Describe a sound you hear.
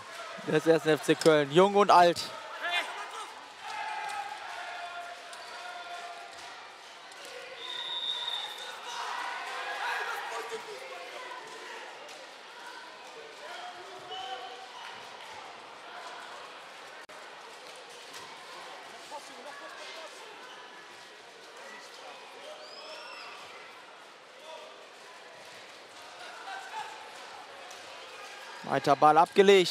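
A large crowd murmurs and cheers in an echoing hall.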